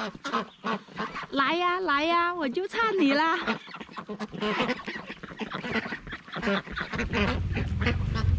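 Ducks quack as they waddle close by.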